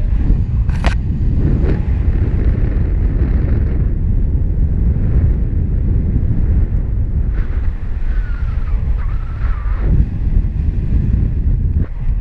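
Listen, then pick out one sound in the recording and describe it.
Wind rushes loudly and steadily past the microphone high in the open air.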